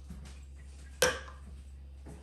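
A plastic bottle knocks down on a stone counter.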